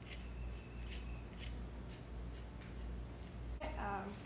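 A fork scrapes softly across a honeycomb.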